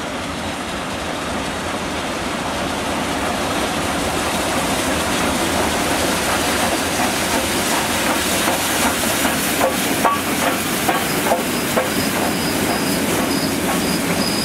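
A steam locomotive chuffs loudly as it rolls in close by.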